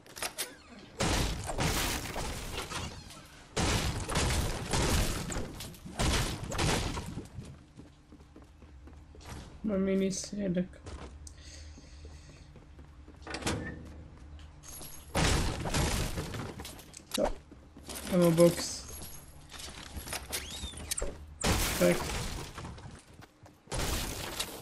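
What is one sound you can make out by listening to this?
A pickaxe smashes repeatedly into wood and metal objects with loud crunching blows.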